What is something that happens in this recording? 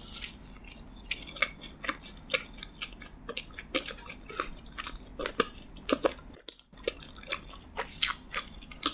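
A woman chews and smacks her lips loudly close to a microphone.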